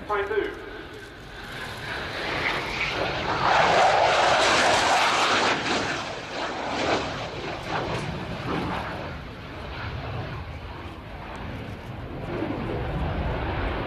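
A jet engine roars loudly as a fighter plane sweeps past overhead.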